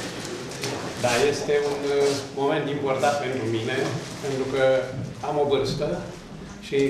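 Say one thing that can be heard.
An elderly man speaks calmly and clearly nearby.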